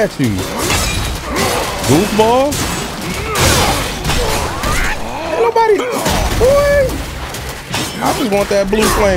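Fiery blasts roar and crackle in a video game fight.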